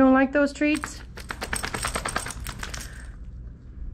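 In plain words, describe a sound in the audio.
A dog shakes its body, its collar jingling.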